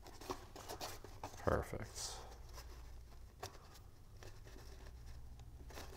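Paper rustles and crinkles as fingers press and fold it.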